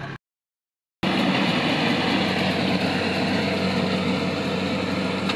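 A harvester rumbles as it drives through a crop field outdoors.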